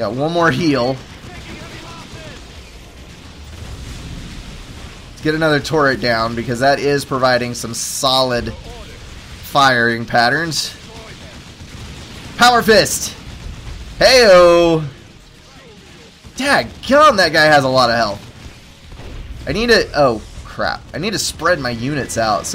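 Gunfire and blasts crackle in a battle.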